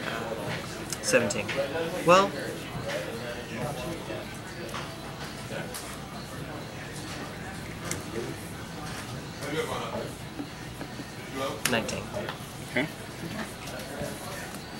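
Playing cards tap and slide softly on a cloth mat.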